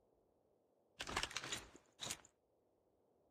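Gear rattles as ammunition is picked up.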